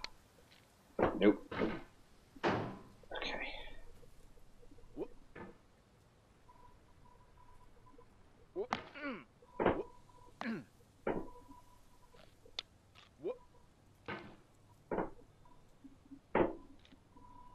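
A metal hammer clanks and scrapes against rock.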